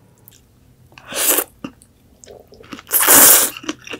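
A woman slurps noodles loudly, close up.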